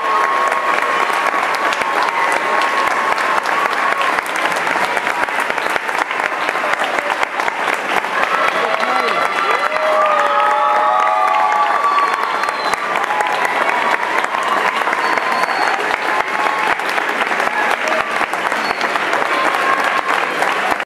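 A crowd of young people chatters and calls out.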